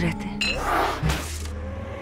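A woman gasps in fright.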